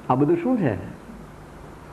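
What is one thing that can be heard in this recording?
An elderly man speaks with animation, close by.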